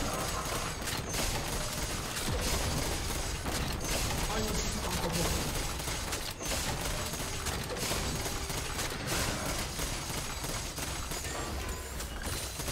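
Fantasy battle sounds of magic spells and sword strikes clash and crackle rapidly.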